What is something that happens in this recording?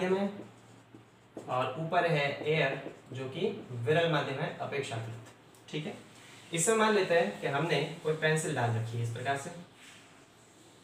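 A young man explains calmly nearby.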